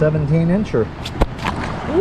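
A fish flaps and slaps against rock.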